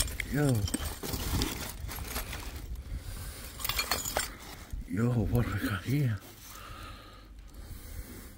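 Glass bottles clink against each other.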